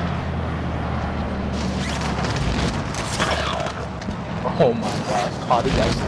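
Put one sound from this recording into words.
Wind rushes steadily past during a fall through the air.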